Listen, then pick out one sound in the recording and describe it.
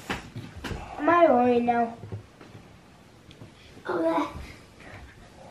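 A child talks excitedly close by.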